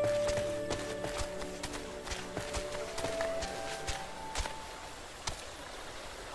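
Footsteps tread on soft forest ground.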